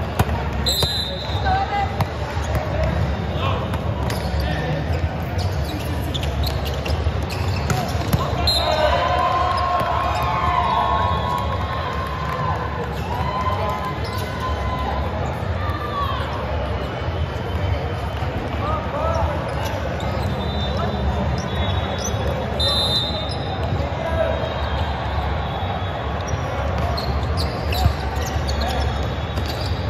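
A crowd of young players and spectators calls out and chatters in a large echoing hall.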